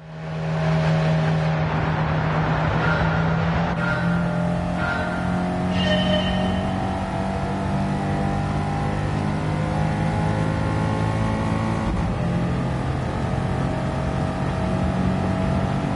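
Tyres hum and rumble on the road.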